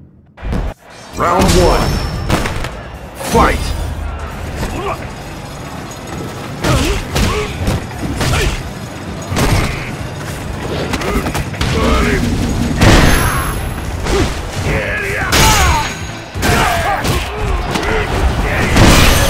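Punches and kicks land with heavy, quick thuds.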